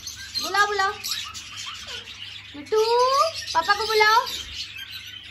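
A parrot chatters and squawks in warbling calls close by.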